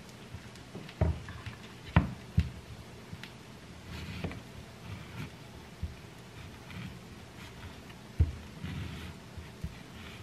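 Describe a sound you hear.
A knife cuts into an avocado on a plastic cutting board.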